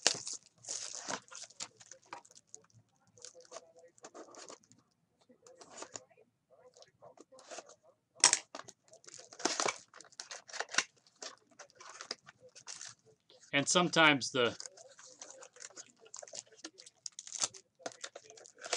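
Cellophane wrapper crinkles and tears as hands open a box.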